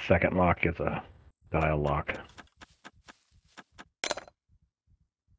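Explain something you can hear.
A lockpick scrapes and clicks inside a lock.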